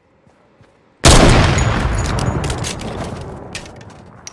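A sniper rifle fires a loud shot that echoes away.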